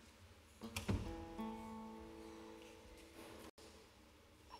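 A guitar is strummed in a large echoing hall.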